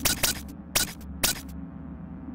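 Short clicks sound as menu options are selected.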